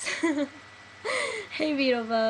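A young woman laughs lightly.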